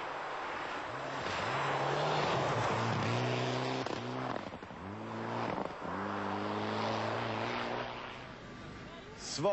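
A rally car engine roars and revs at speed.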